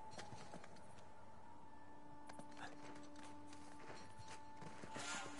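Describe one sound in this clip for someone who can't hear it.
Hands scrape and grab at rough stone during a climb.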